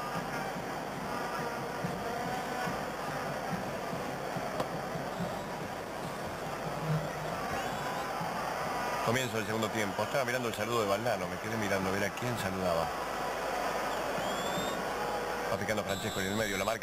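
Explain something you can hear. A stadium crowd murmurs in the distance.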